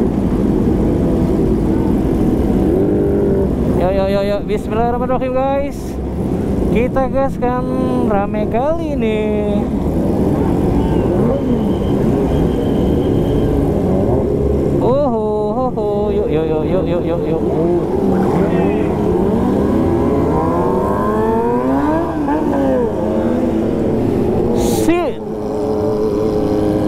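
Motorcycle engines rumble steadily close by.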